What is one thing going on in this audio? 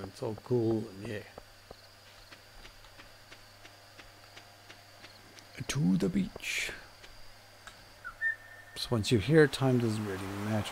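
A young man talks casually into a close microphone.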